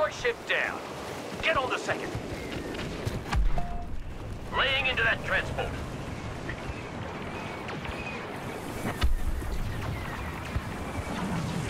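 Laser blasts zap and crackle in the distance.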